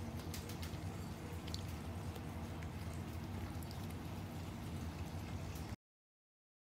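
A small dog laps and crunches food from a bowl.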